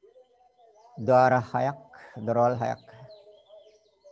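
An elderly man speaks calmly through an online call.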